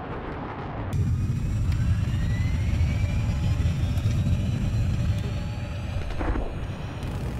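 Missiles whoosh as they fire.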